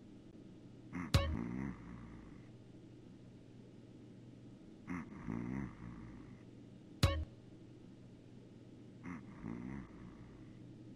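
A man snores loudly in slow, regular breaths.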